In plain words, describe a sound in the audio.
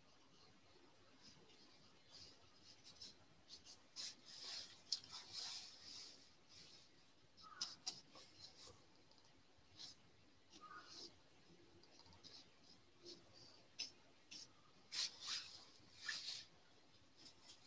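A paintbrush brushes softly across paper in short strokes.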